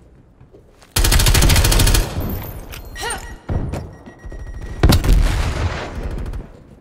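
An automatic rifle fires rapid, loud bursts.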